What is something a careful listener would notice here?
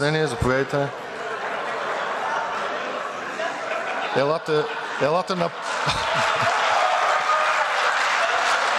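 A crowd of men murmurs and chatters in a large echoing hall.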